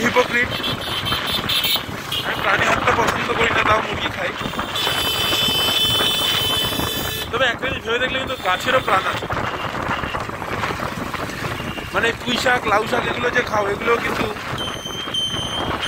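Other motorbikes pass by nearby.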